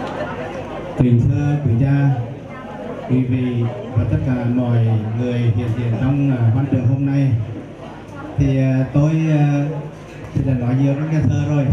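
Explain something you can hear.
A middle-aged man speaks calmly into a microphone over loudspeakers.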